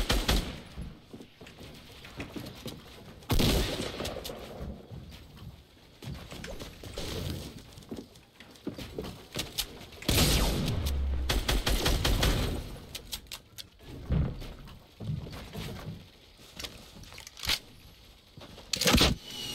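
Game building pieces clatter and thud into place.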